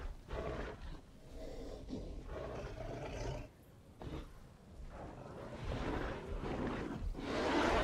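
A large dinosaur's footsteps thud on grass.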